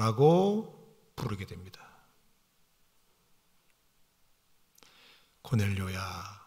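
A middle-aged man speaks slowly and solemnly into a microphone, with pauses.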